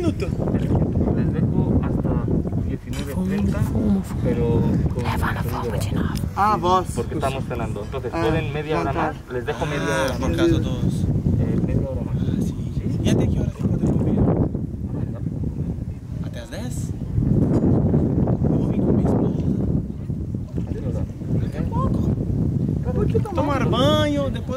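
Young men talk and exclaim with animation close by, outdoors.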